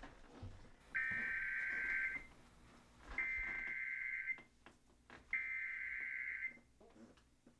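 A video game plays long electronic tones through a television speaker, three times.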